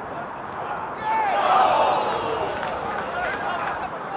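A small crowd of spectators cheers and shouts outdoors.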